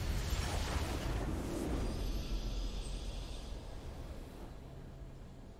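A triumphant game victory fanfare bursts out loudly, then fades away.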